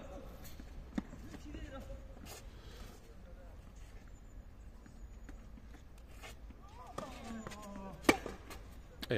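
A tennis ball is struck by a racket with sharp pops.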